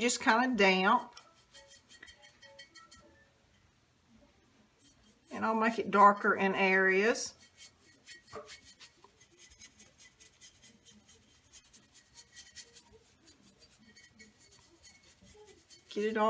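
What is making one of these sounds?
A stiff brush scrapes against a glass jar.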